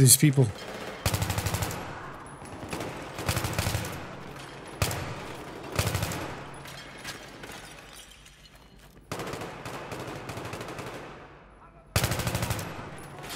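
A rifle fires rapid bursts that echo through a large hard-walled hall.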